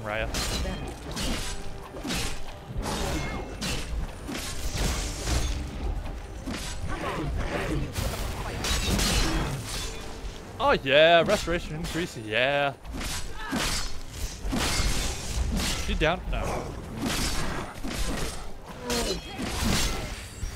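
Blows thud during a fight.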